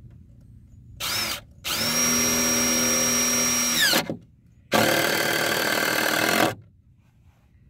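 A cordless drill whirs in short bursts as it drives screws into wood.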